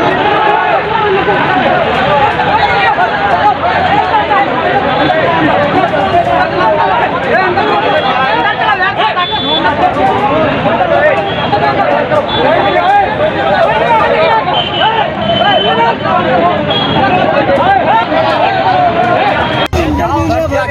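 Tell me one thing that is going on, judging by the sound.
A crowd of men shouts and chants loudly outdoors.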